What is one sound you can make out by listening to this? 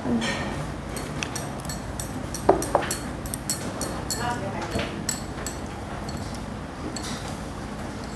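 Metal utensils clink against a bowl.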